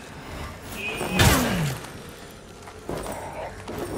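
Flames roar from a burning weapon.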